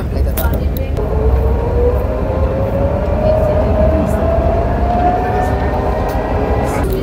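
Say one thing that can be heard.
An electric motor whines with a slowly rising pitch.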